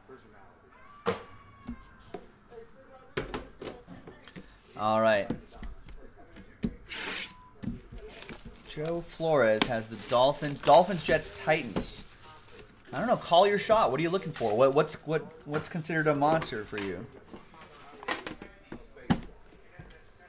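A metal tin is set down and slid on a table with a knock.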